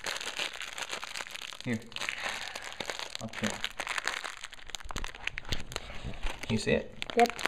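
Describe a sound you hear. Clear plastic wrapping crinkles and rustles between fingers.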